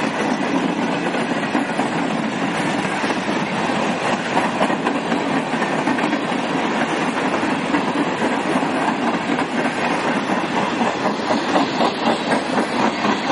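A freight train rumbles past close by, its wheels clattering rhythmically over the rail joints.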